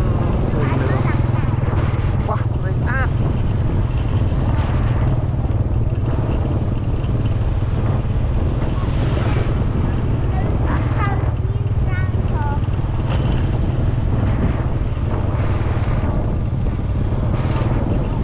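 Wind rushes steadily past, as if heard outdoors while riding.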